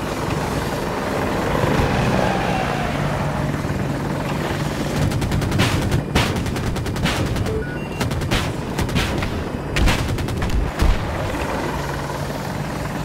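A helicopter's rotor thumps and its engine whines steadily.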